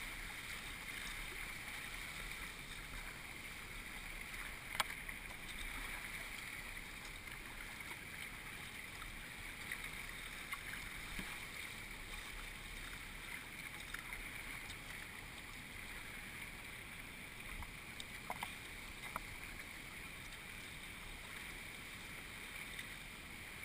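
River rapids rush and churn steadily close by.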